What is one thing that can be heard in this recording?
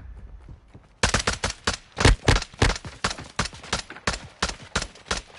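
Rapid gunfire bursts from a rifle in a game.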